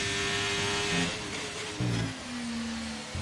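A racing car engine pops and drops sharply in pitch as the car slows.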